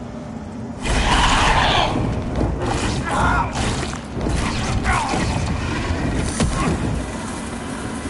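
Heavy blows crash and thud in a fight.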